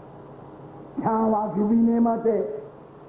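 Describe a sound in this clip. An elderly man speaks loudly and with feeling through a microphone.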